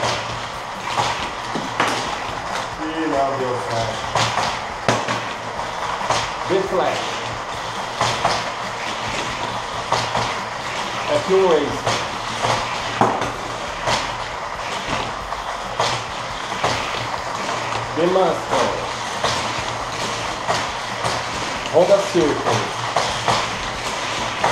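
Small plastic toy cars click and clatter as they are picked up and set down.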